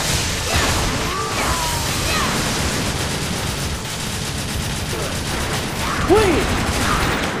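A monster screeches loudly.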